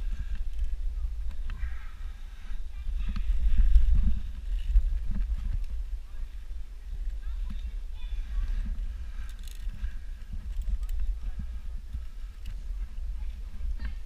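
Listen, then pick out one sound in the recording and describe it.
Ropes of a net creak and rustle as a climber grips them.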